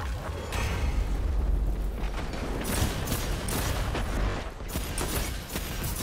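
Gunshots and energy weapon blasts fire in a video game.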